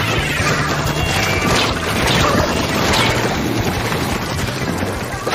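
Paint guns spray and splatter in quick bursts.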